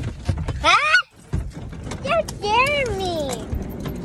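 A seat belt buckle clicks open.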